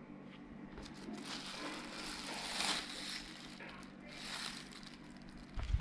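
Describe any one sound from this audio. Plastic wrap crinkles as a hand handles it.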